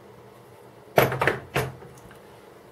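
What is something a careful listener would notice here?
Metal tools clink and rattle.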